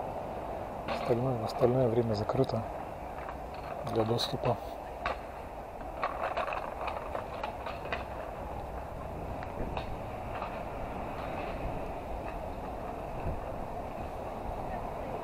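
Bicycle tyres roll steadily over a paved path.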